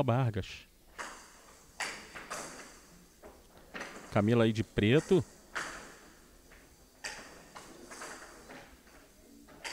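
A ball knocks against wooden paddles and a table's sides in a quick rally.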